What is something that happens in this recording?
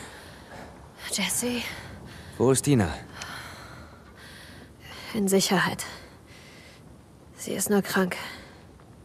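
A young woman answers quietly and tensely, close by.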